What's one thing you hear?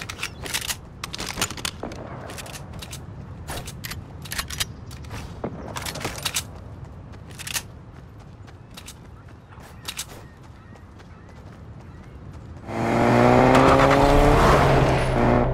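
Footsteps run over grass.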